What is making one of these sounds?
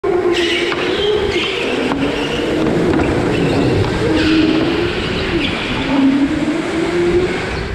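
Go-kart tyres squeal on the track now and then.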